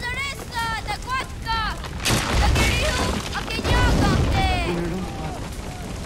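A young man shouts in distress.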